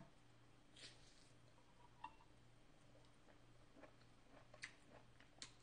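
A young woman chews food with soft smacking sounds close to a microphone.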